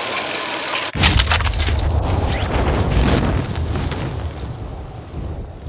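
Wind rushes loudly past during a freefall.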